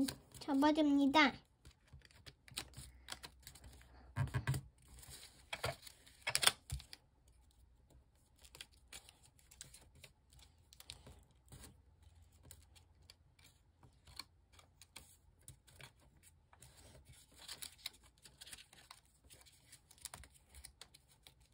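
Paper crinkles and rustles softly as it is folded.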